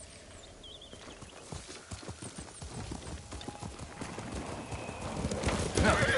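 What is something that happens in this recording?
Horse hooves thud and clop on grass.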